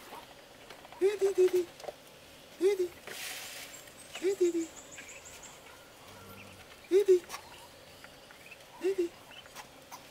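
Ducks call with short low quacks nearby.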